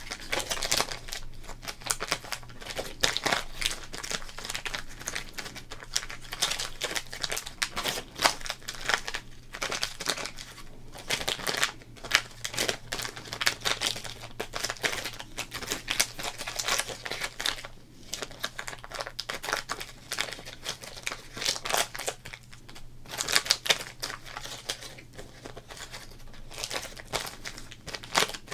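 A plastic wrapper crinkles and crackles close by as hands handle it.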